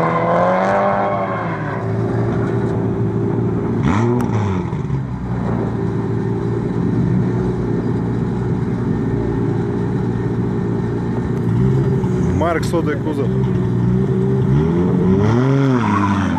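Car engines idle loudly with a steady rumble close by.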